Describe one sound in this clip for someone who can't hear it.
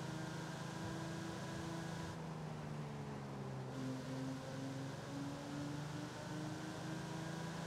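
A sports car engine hums steadily, its pitch shifting up and down as it cruises.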